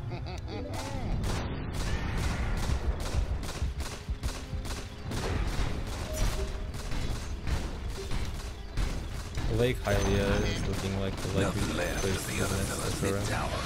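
Weapons clash and spells burst in a fast fight.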